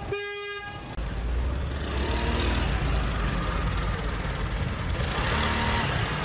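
A car engine idles nearby with a low rumble.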